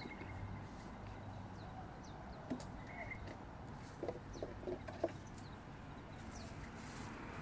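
Leaves rustle close by as a bush is handled.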